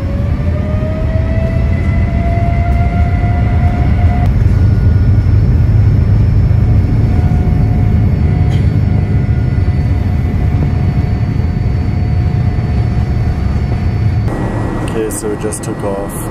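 A jet engine roars loudly and steadily with a rising whine.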